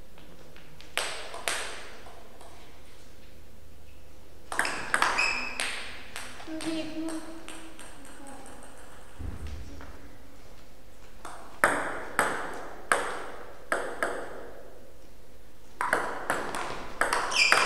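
Hits of the ball echo in a large hall.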